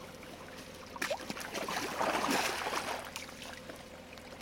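Water splashes as a net is dipped into a pond.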